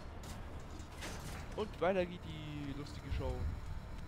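A heavy metal door swings shut with a clank.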